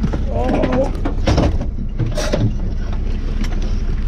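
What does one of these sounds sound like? Gear clatters and knocks inside a vehicle.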